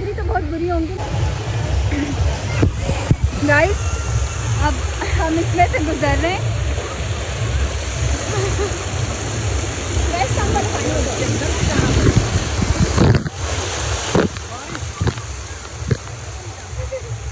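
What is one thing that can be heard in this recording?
Water sprays and splashes down.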